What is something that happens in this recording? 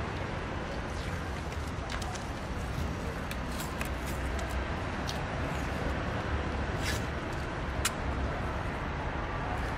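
A cloth rubs and squeaks against a car wheel.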